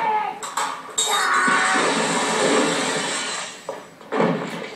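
Glass shatters and crashes loudly.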